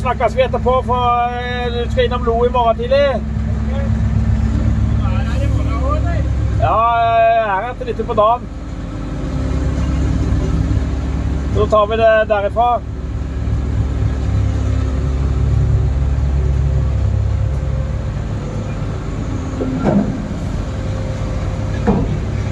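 A machine's diesel engine rumbles steadily.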